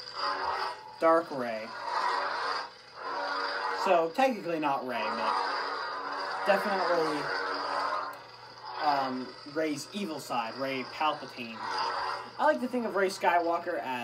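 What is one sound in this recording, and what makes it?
A toy lightsaber whooshes and crackles as it swings.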